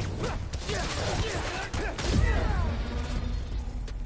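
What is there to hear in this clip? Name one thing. Energy blasts zap and crackle.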